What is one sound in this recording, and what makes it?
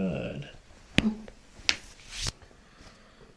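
Joints crack sharply under pressing hands.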